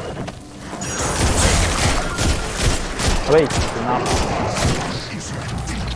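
Energy blasts crackle and explode in a video game.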